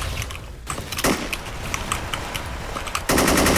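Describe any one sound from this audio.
Gunshots crack from a rifle.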